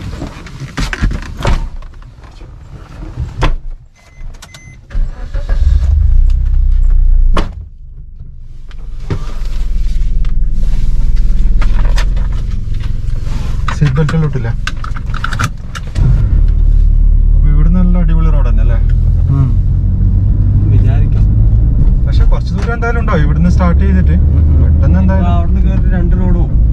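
A car engine hums low and steady while driving.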